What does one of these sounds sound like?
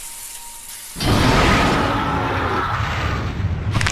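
Lava roars and rumbles loudly.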